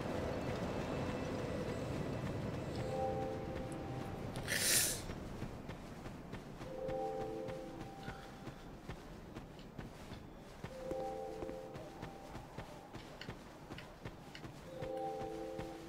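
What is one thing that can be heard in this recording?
Footsteps thud on dirt and grass at a run.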